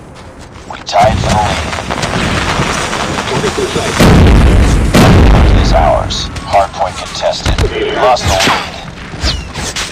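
Gunfire rattles in rapid bursts.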